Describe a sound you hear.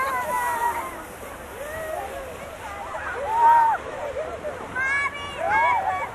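A plastic sled slides and scrapes over snow.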